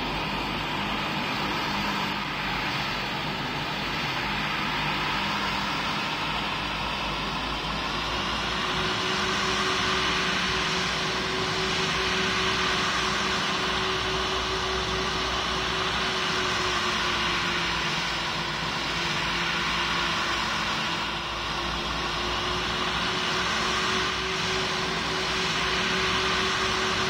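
Jet engines hum and whine steadily as an airliner taxis.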